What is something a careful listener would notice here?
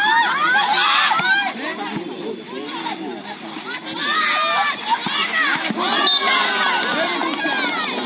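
A volleyball is struck with a slap.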